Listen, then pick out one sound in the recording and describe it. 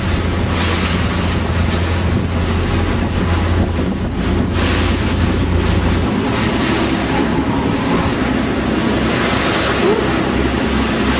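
Water splashes and rushes against a moving boat's hull.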